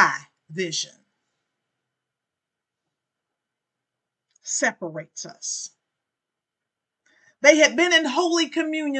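A woman speaks with animation, close to a microphone, with pauses.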